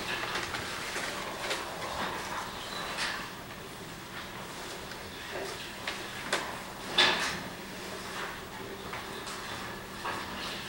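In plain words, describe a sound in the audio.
A man speaks calmly through a microphone in a large room with some echo.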